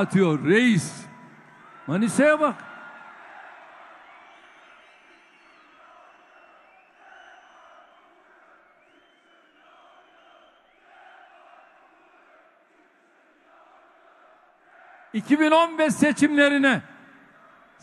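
A large crowd chants loudly in unison.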